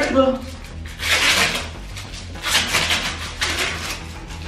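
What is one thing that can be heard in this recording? Plastic wrapping rustles and crinkles as hands handle it.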